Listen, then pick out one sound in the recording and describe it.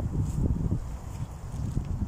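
Gloved hands grip and shift a heavy log with a dull scrape.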